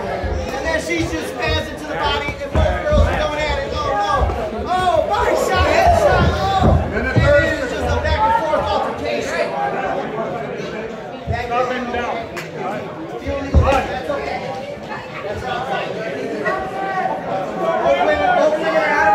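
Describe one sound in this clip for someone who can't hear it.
A crowd chatters and cheers loudly in an echoing hall.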